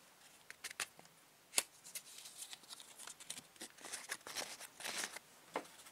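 Sandpaper rubs against a plastic tube.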